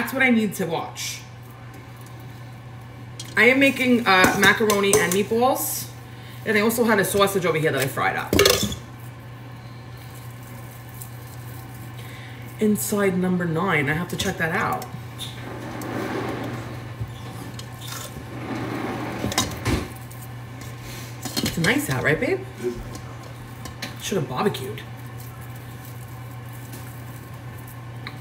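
Hands squish and knead wet minced meat.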